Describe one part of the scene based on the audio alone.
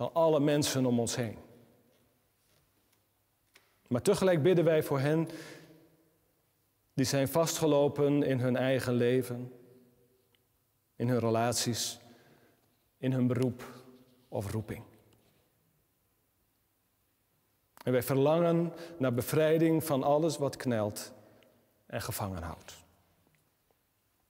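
A middle-aged man reads out slowly and calmly in a reverberant room, with pauses between phrases.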